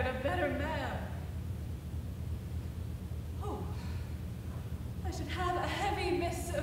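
A young woman speaks with emotion, heard from a distance in a large room.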